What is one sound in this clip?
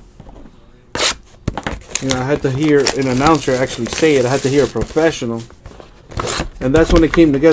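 Plastic wrapping crinkles and tears.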